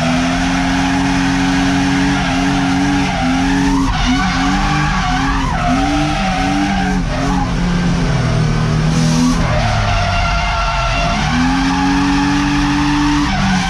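A car engine roars loudly from inside the cabin, its revs rising and falling sharply.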